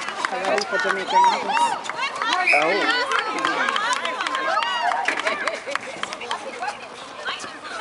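A crowd of young spectators cheers and chatters nearby.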